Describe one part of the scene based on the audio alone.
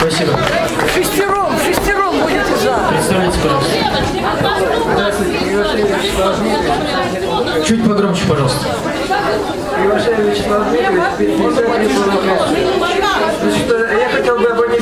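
An older man speaks through a microphone over loudspeakers in a large echoing hall.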